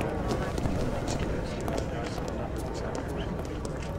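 Many footsteps patter on pavement as a crowd walks by.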